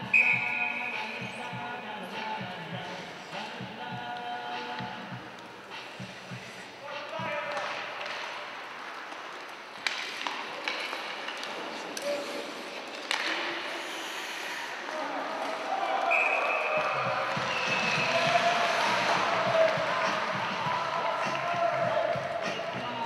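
Sticks clatter and scrape on the ice.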